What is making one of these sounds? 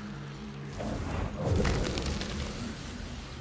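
Sparks crackle and burst against rock.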